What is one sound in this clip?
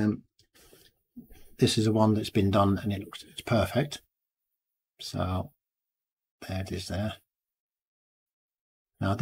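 An older man speaks calmly and close to a microphone, in short bursts with pauses.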